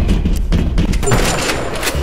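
A shotgun fires.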